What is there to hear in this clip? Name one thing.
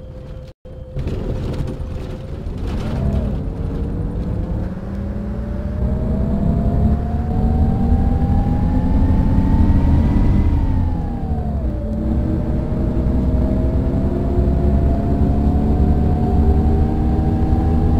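A bus engine revs up as the bus speeds up again.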